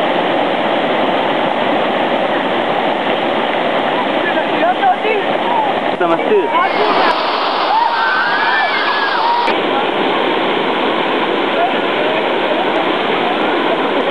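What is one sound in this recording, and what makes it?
Water rushes and splashes steadily over a weir.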